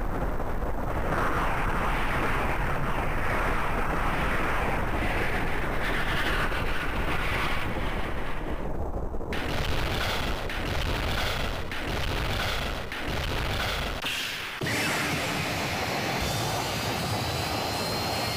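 Rocket engines roar loudly and steadily.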